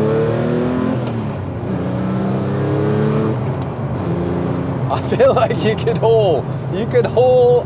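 A car engine hums and revs up through the gears.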